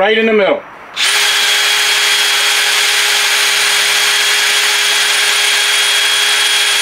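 A power drill whirs steadily at high speed.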